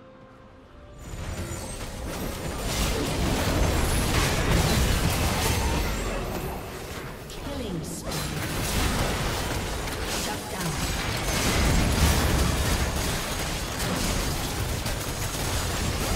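Game spell effects whoosh, crackle and thud in a busy fight.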